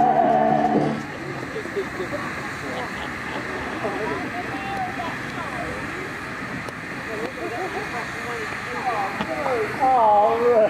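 Men's voices call and chatter outdoors at a distance.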